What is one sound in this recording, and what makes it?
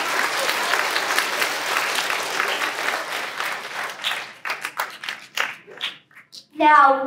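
A large crowd of children applauds in an echoing hall, the clapping thinning out and fading.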